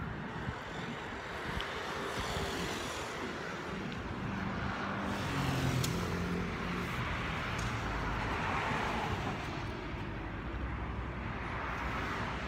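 Traffic rumbles past outdoors.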